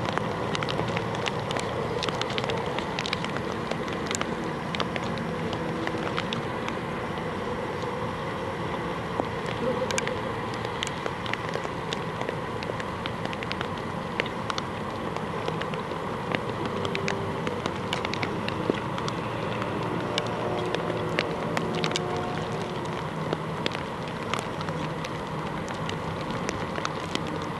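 A horse trots with soft, rhythmic hoofbeats on sand.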